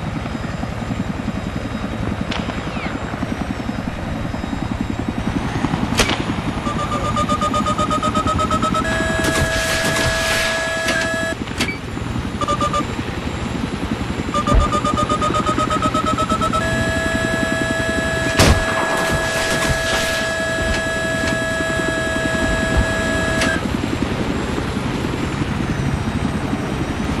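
A helicopter engine drones steadily.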